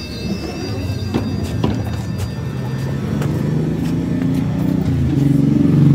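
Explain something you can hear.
Footsteps scuff on a pavement.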